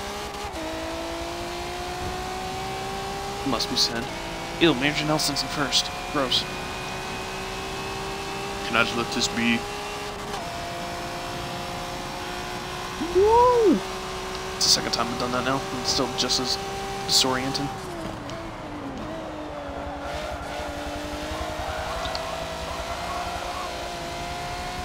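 A racing car engine roars steadily, climbing in pitch through gear changes and dropping as the car slows.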